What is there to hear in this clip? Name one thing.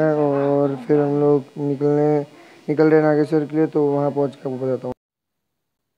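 A teenage boy sings close by.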